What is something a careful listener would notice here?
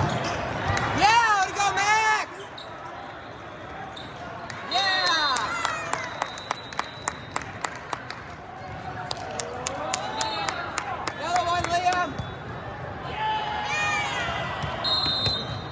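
Young players shout calls to each other in a large echoing hall.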